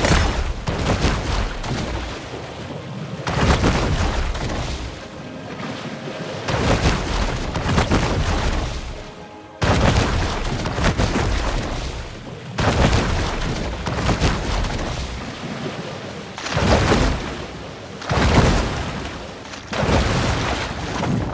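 Water splashes as a fish thrashes and swims at the surface.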